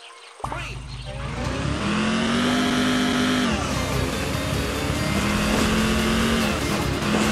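A car engine revs loudly, its pitch climbing and dropping.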